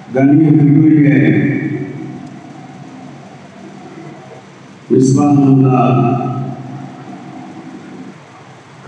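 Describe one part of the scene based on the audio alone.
An elderly man speaks slowly and forcefully through a microphone and loudspeakers, his voice echoing.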